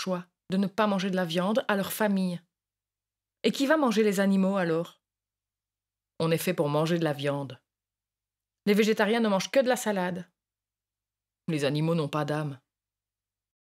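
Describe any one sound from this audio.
A young woman speaks calmly, close by, in short phrases with pauses.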